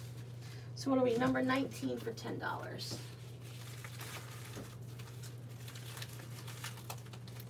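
A plastic mailer rustles and crinkles as it is handled.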